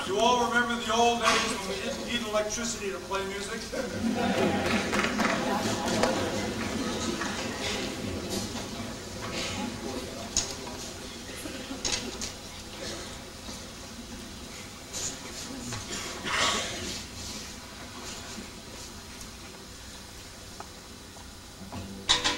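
A small band plays along with a choir.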